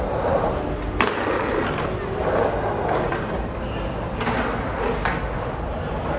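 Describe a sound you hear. A skateboard clacks sharply against the concrete edge.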